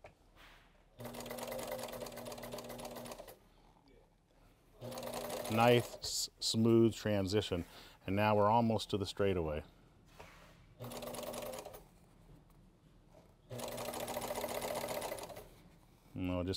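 A sewing machine runs in short steady bursts, stitching.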